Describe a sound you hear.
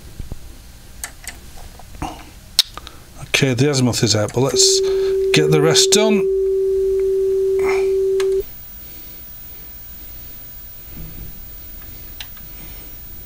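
Buttons on a cassette deck click as they are pressed.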